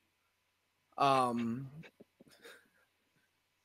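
A young man laughs through an online call.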